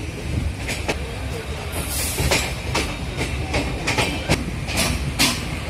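A train rumbles along the tracks.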